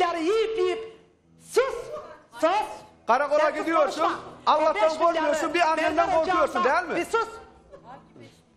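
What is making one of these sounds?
A middle-aged man speaks loudly and with agitation.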